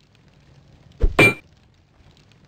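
An axe strikes a wooden crate with hollow thuds.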